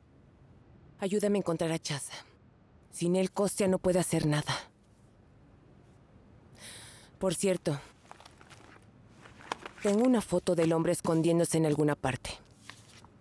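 A woman speaks calmly and firmly, close by.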